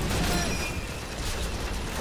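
A rifle is reloaded with a metallic clack.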